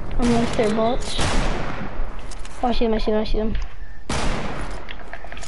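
A rifle shot cracks loudly and rings out.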